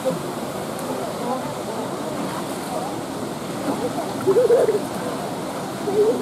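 Water splashes softly as a polar bear swims.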